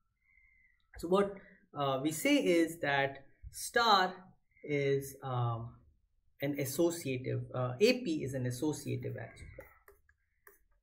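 A man speaks calmly into a close microphone, like a lecturer explaining.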